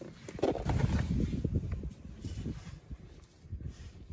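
A hand scrapes a small toy car up out of sand.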